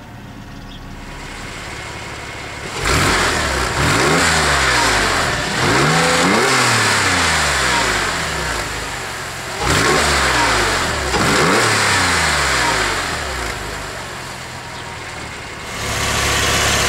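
A sports car engine revs loudly with a deep exhaust roar, heard close behind the car outdoors.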